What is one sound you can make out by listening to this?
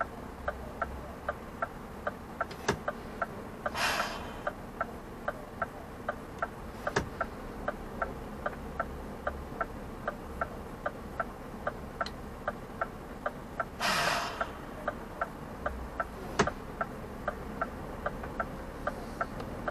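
Cars and vans drive past close by on the road.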